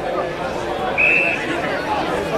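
A whistle blows once, short and shrill.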